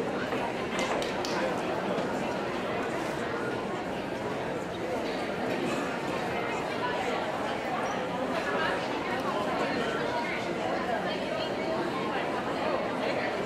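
A large group of young people chatters and murmurs in a large echoing hall.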